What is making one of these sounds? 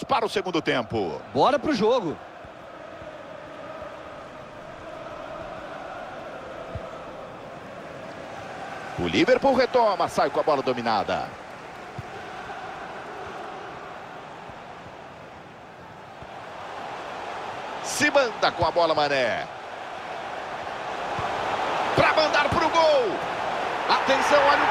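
A stadium crowd murmurs steadily and swells into a roar near the goal.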